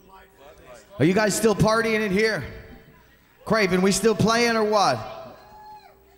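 A man shouts and sings loudly into a microphone.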